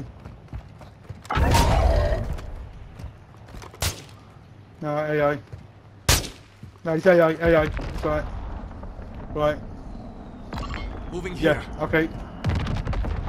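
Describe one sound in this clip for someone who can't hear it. Footsteps crunch on dry dirt and rock.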